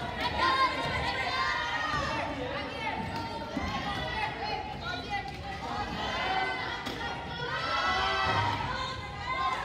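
Young players call out to each other in an echoing hall.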